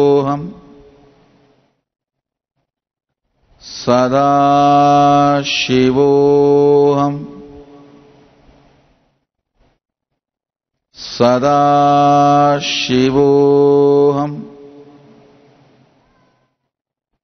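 A man chants long, drawn-out tones into a microphone, with echo trailing after each.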